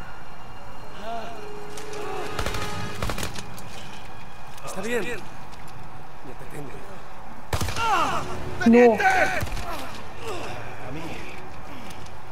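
A young man speaks urgently and shouts nearby.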